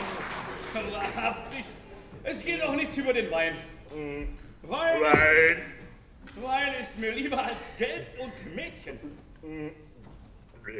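A man sings operatically in a large hall.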